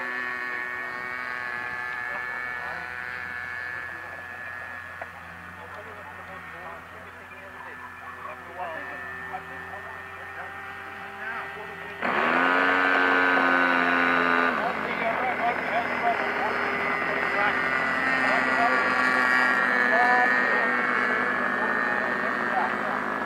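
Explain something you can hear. A model airplane's engine drones overhead, rising and falling in pitch as it flies by.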